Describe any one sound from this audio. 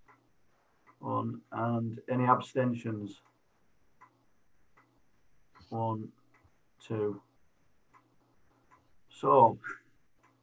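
A man speaks calmly over an online call, in short phrases with pauses.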